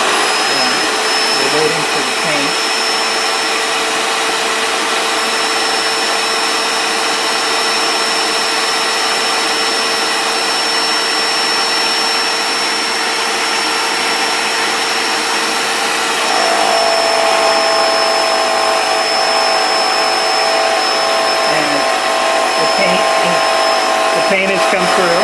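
A paint sprayer pump whirs steadily, its tone shifting partway through.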